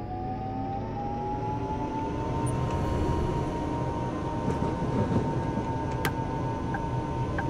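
A tram motor whines steadily, rising slightly in pitch.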